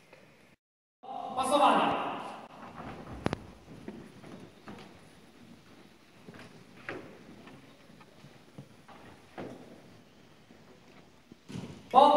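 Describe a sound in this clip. A crowd murmurs and shuffles in a large echoing hall.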